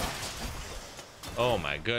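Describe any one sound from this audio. Video game combat sounds, with quick strikes and blasts.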